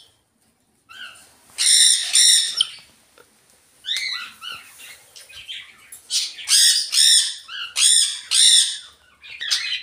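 A cockatoo screeches loudly, over and over.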